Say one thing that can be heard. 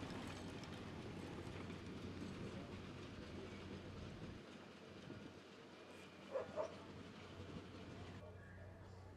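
A steam locomotive chugs as it pulls a train.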